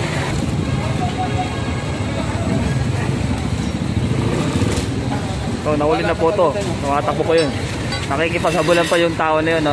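A motorbike engine hums at low speed.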